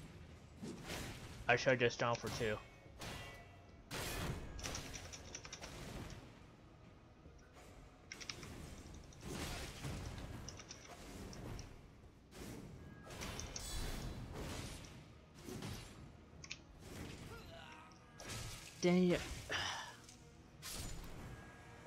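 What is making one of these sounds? Swords clash and strike with sharp metallic blows.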